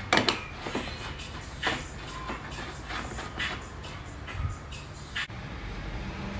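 Metal parts of a coffee pot clink and scrape as they are screwed together.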